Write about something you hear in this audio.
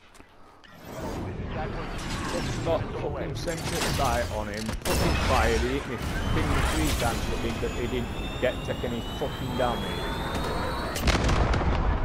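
A cruise missile roars as it launches.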